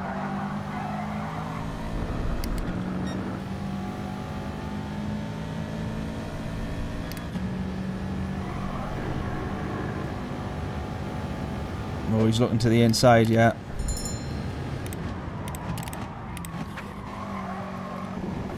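A racing car engine roars and shifts through gears.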